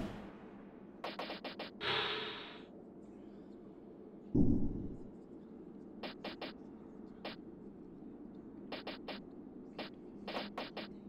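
Short menu clicks tick in quick bursts.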